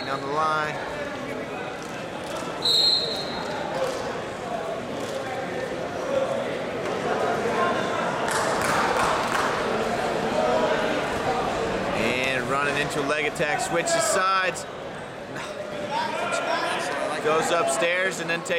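Wrestling shoes squeak on a mat.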